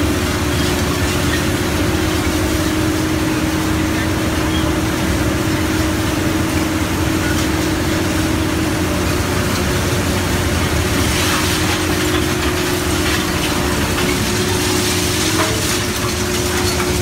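A large industrial shredder hums and drones steadily.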